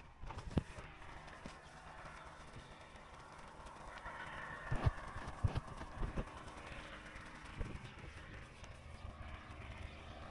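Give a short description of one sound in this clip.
Powder pours and hisses softly from a sack into a basin.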